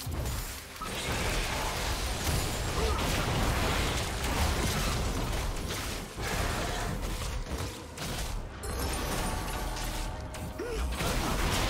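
Fighting sound effects clash and burst in a video game.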